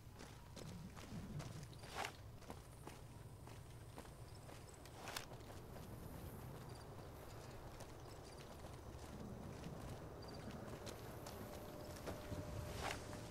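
Footsteps crunch on rough ground at a steady walking pace.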